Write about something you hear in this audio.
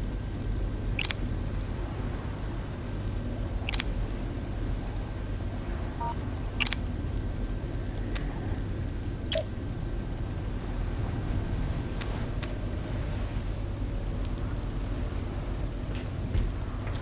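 Game interface clicks sound sharply as items are selected.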